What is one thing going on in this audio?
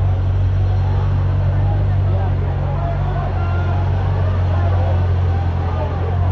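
A crowd of people shouts and chants outdoors.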